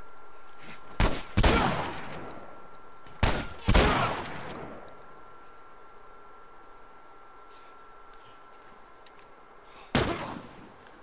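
Rifle shots bang loudly and echo outdoors.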